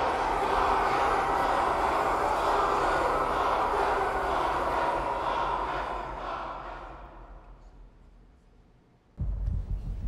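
A large crowd cheers and chants loudly, then fades away.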